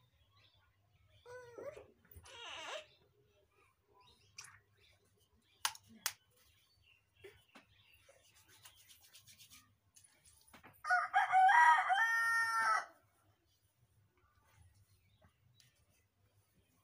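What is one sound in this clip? A comb rustles through long hair.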